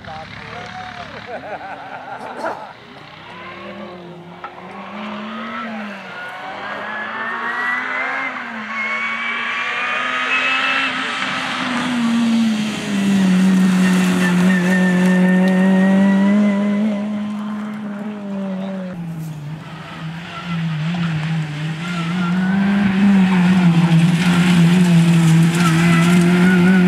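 A rally car engine revs hard, rising and falling in pitch as the car approaches and speeds past.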